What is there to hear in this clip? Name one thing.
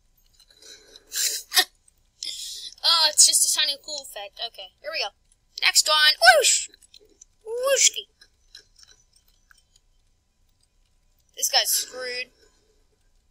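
A boy talks with animation close to a microphone, in bursts.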